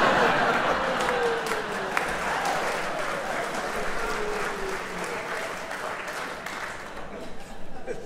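Hands clap in lively applause in a large hall.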